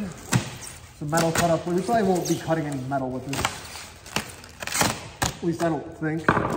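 Plastic wrap crinkles and rustles.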